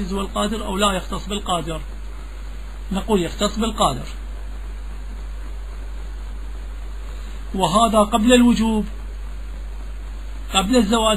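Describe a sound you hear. A man speaks in short, intoned bursts with long pauses, heard through a microphone.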